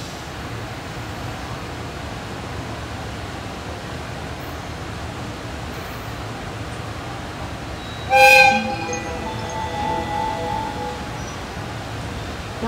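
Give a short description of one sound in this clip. A locomotive hums steadily nearby.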